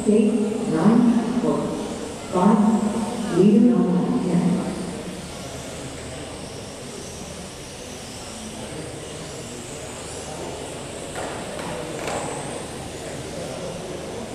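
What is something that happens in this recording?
Electric 1/12 scale radio-controlled cars whine around a track in a large echoing hall.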